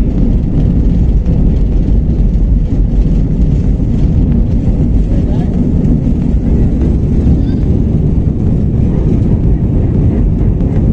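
An airliner's cabin rumbles and shakes as the wheels roll over the runway.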